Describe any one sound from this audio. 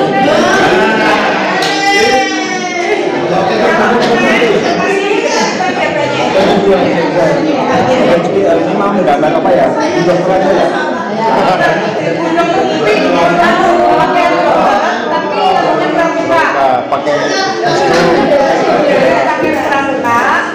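Several men and women talk over one another at close range.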